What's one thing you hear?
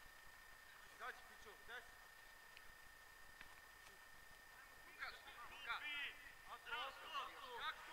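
Young men shout to each other across an open field, some distance away.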